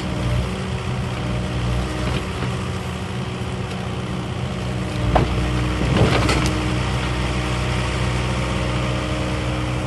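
A hydraulic crane arm whines as it swings.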